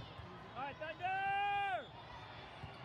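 A referee blows a long, shrill whistle.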